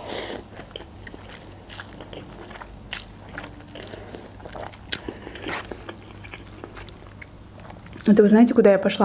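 A young woman chews with soft, wet clicks.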